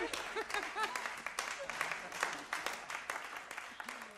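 A young man laughs near a microphone.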